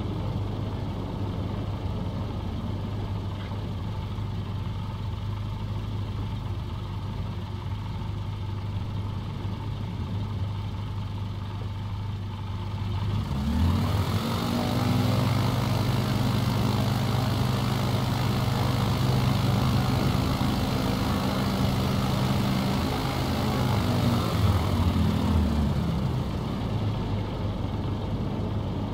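A small propeller plane's engine drones steadily, swells louder for a while, then settles back.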